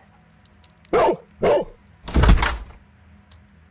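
A dog barks loudly a few times.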